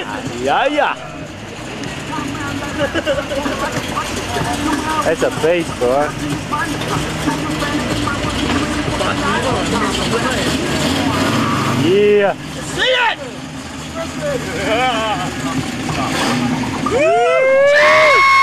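A car engine rumbles and revs nearby.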